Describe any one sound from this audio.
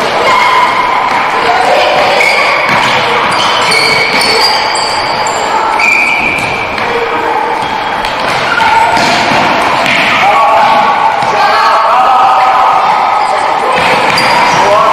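Sneakers squeak sharply on a hard floor.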